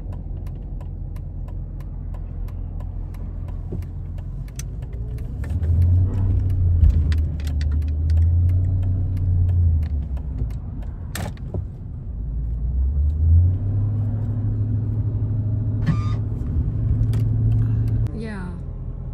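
A car engine hums low and steady while driving.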